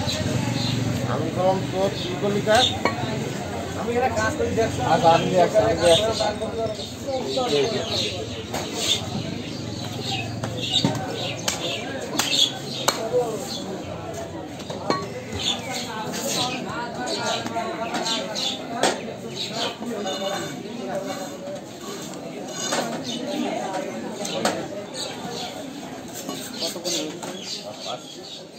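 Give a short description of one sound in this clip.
A cleaver chops through meat onto a wooden block with sharp knocks.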